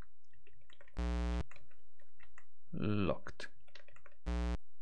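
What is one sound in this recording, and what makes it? A computer game gives a short, harsh buzzing tone.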